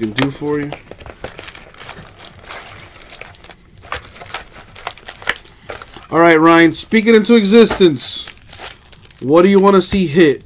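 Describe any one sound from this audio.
Foil trading card wrappers crinkle and rustle in someone's hands.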